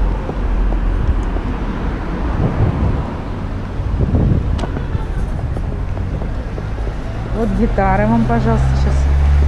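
Small hard wheels rattle and roll over paving.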